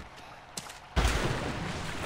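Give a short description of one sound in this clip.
Something splashes heavily into water.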